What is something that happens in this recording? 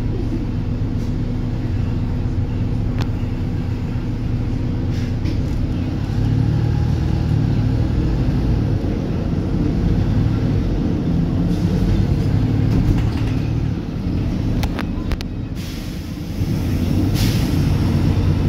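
Cars pass by outside on the road.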